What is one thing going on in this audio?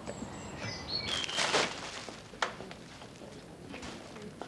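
A plastic bin bag rustles.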